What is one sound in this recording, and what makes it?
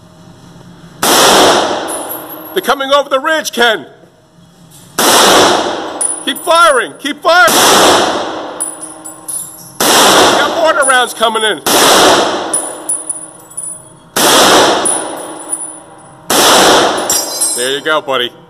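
An M1 Garand rifle fires single shots, each ringing off the walls of an echoing indoor range.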